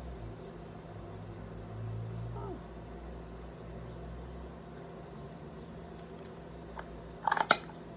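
Paper rustles and crinkles as a package is handled.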